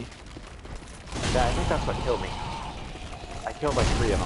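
A fiery explosion bursts with a loud roar.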